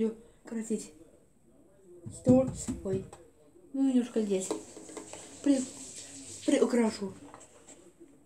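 A young girl speaks nearby in short, halting bursts.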